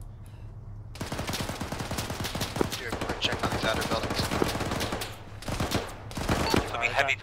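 Rapid gunfire crackles in a video game.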